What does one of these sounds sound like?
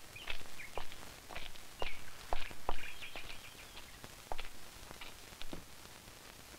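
Footsteps thud across a hard floor.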